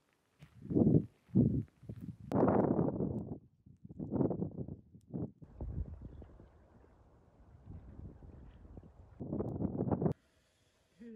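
Wind blows across the microphone outdoors in gusts.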